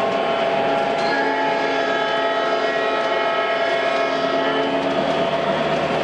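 A model train horn sounds.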